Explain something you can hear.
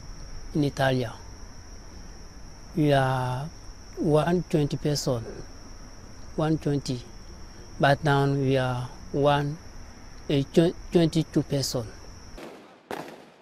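A young man speaks calmly and close to a microphone.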